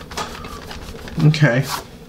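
An eraser rubs on paper.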